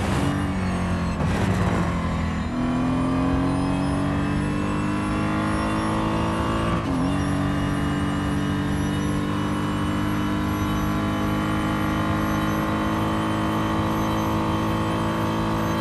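A racing car engine roars at high revs, rising in pitch as it speeds up, with a brief dip when shifting gears.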